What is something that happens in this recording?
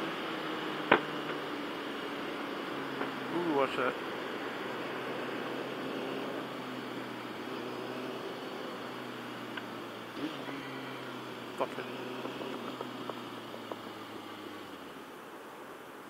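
A motorcycle engine hums steadily while riding, then quiets as the motorcycle slows.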